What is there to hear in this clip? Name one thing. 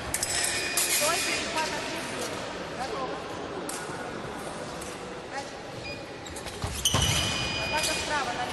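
Fencers' shoes squeak sharply on a hard floor.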